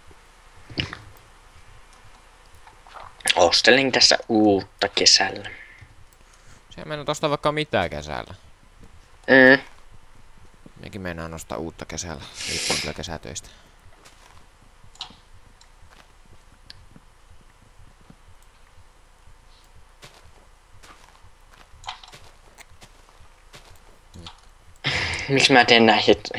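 Dirt crunches in short bursts as it is dug out.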